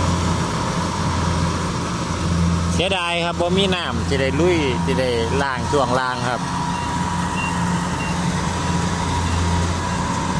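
A combine harvester's engine drones steadily close by.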